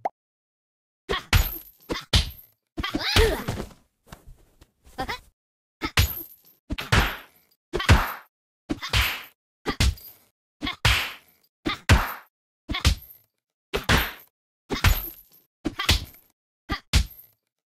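A punching bag thuds under repeated punches.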